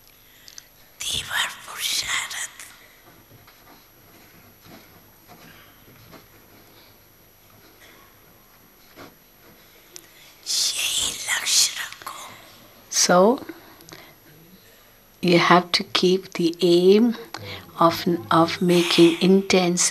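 An elderly woman speaks slowly and calmly into a microphone, with long pauses.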